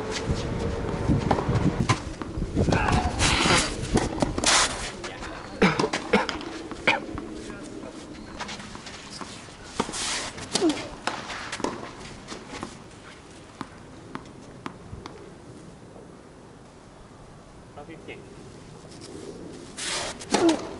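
A tennis ball pops off a racket.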